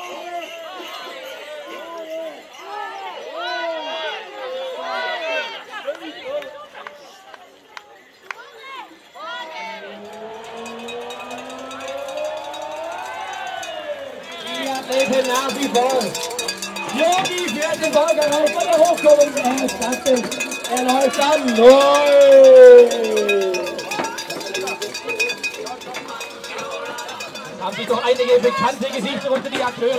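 A crowd of people chatters and cheers outdoors.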